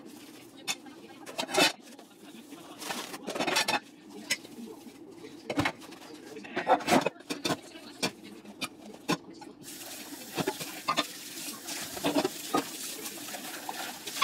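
Metal pots and lids clink and knock against each other.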